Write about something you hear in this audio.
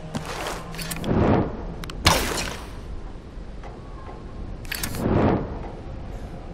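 An arrow whooshes away.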